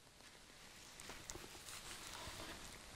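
Book pages rustle softly as a man turns them.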